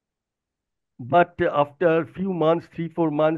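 A young man speaks calmly over an online call.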